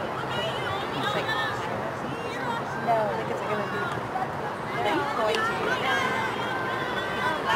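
Young women call out to each other across an outdoor field.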